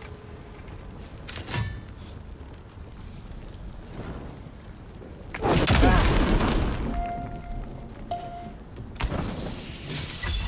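Heavy footsteps tread over rocky ground.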